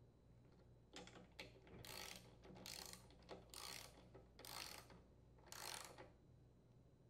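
A socket wrench ratchets on a bolt.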